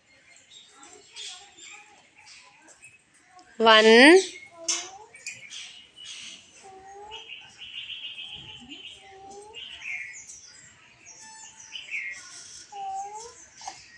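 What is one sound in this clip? A young child speaks in a high voice nearby.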